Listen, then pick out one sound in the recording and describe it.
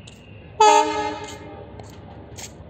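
A train horn blares from a distance.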